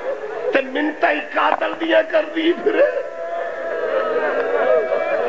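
A man speaks passionately into a microphone, his voice amplified and echoing.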